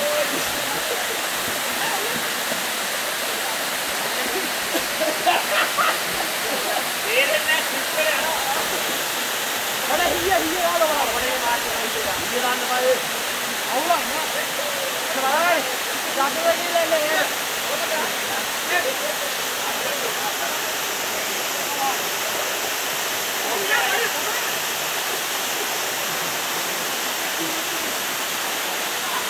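Water rushes and splashes steadily over rocks outdoors.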